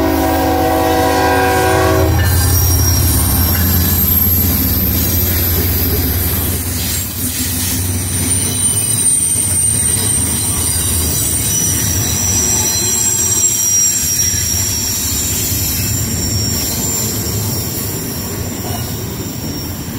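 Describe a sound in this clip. Diesel locomotives rumble heavily as they pass close by.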